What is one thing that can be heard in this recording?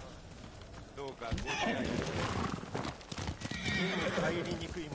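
A horse trots along the ground.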